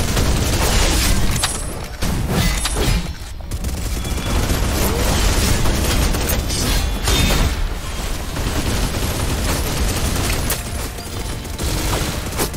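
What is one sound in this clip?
Blades clash and slash with metallic ringing.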